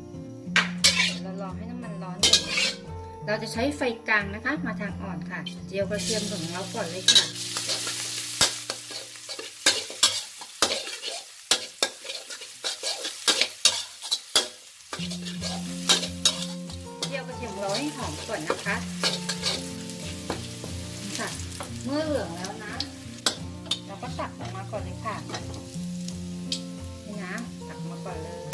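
A metal spatula scrapes and clatters against a wok.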